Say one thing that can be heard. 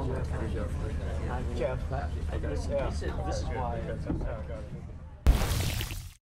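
Two men talk with each other at close range.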